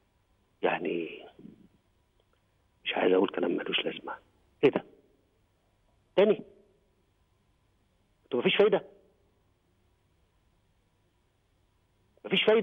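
A man speaks calmly in short, broken phrases.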